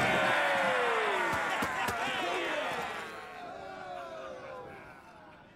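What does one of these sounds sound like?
A crowd of men cheers and shouts loudly in a large room.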